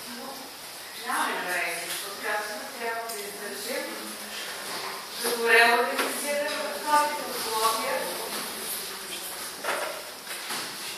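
A woman speaks at the front of a room with some echo, heard from a distance.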